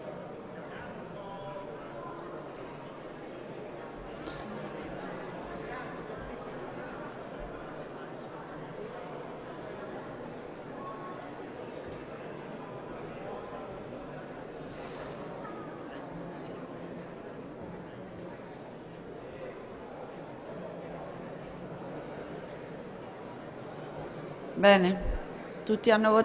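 Many people murmur and chatter in a large echoing hall.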